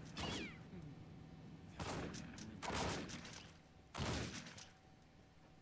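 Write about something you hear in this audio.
A shotgun fires loud blasts that echo briefly.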